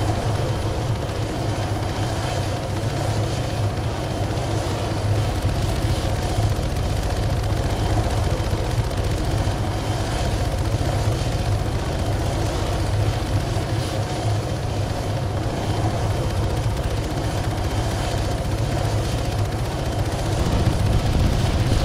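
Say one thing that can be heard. A helicopter's rotor blades thump loudly in a steady, throbbing drone.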